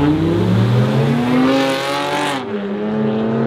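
Tyres squeal on the road.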